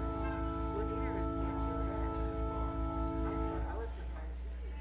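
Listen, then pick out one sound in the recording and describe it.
A keyboard holds a sustained chord that stops abruptly.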